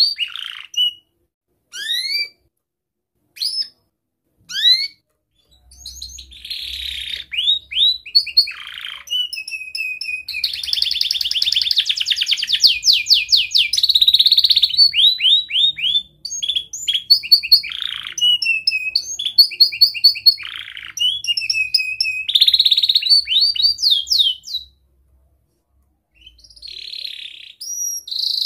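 A canary sings close by with rapid trills, chirps and whistles.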